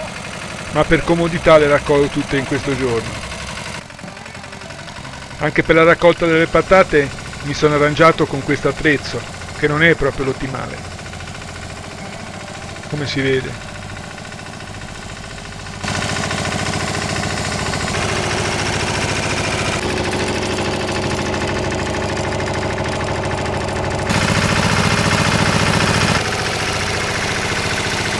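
A tiller engine chugs steadily.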